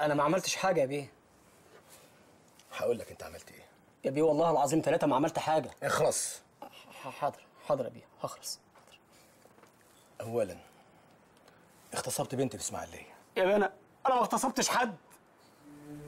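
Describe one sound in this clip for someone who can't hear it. A second man answers with animation, close by.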